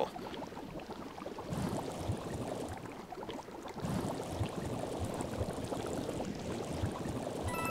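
A game character splashes and squelches through thick liquid.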